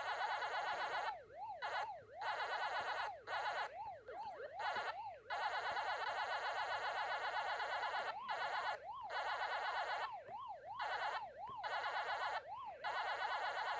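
A video game siren wails up and down steadily.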